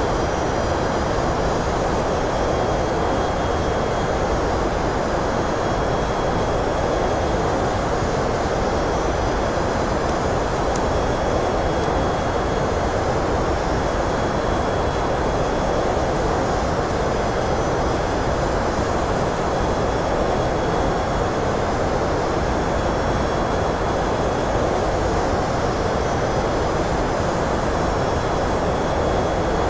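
A jet airliner's engines roar in a steady, muffled drone.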